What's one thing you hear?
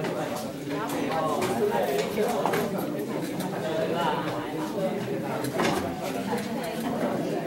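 A crowd of men and women chat, their voices overlapping nearby.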